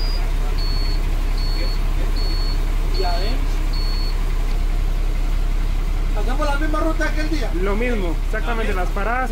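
A bus engine idles with a steady low rumble.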